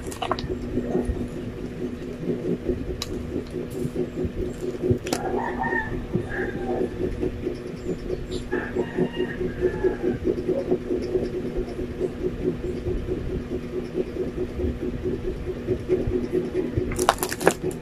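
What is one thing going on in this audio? A metal spoon scrapes and taps against food.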